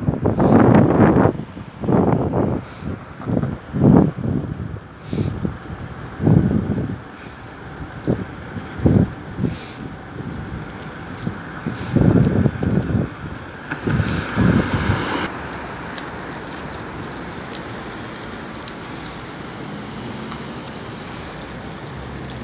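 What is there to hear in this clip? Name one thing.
A bus engine rumbles nearby as the bus slowly pulls away.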